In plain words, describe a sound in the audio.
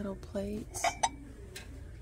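A ceramic plate clinks softly as it is lifted.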